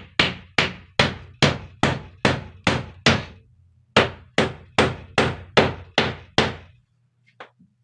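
A hand knocks rapidly and loudly on a wooden wall.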